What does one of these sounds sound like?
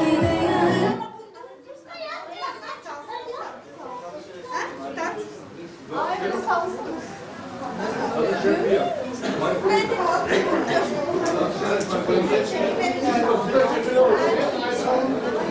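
Men and women chatter and talk in the background.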